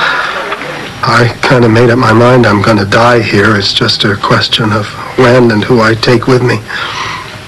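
A young man speaks calmly into a phone.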